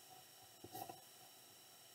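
A pencil scratches briefly on paper.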